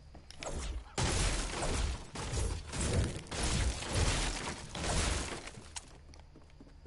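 A pickaxe strikes hard objects again and again.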